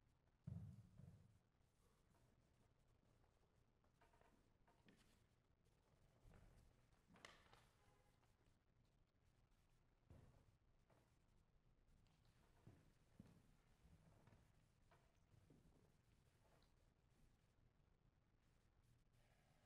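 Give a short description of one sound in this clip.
A grand piano plays softly in a large, echoing hall.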